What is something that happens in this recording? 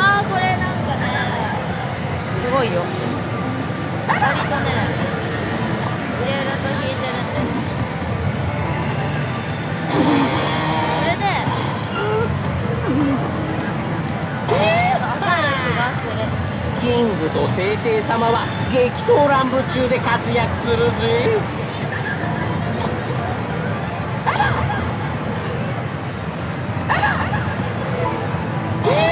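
A slot machine plays loud electronic music and sound effects.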